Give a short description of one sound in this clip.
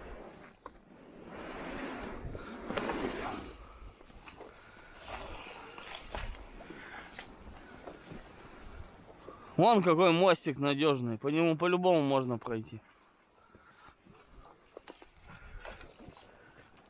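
An inflatable boat scrapes and swishes over dry grass and mud.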